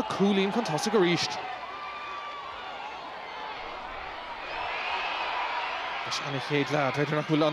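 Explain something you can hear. A large crowd murmurs and cheers in an open-air stadium.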